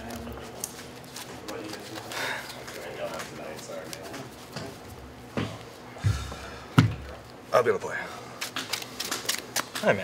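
Cards are shuffled and riffled, clicking and slapping on a table.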